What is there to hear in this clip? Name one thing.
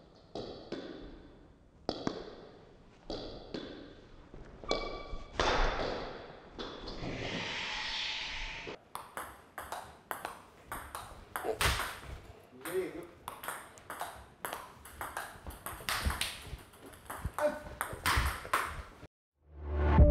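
Table tennis balls click rapidly against paddles and a table.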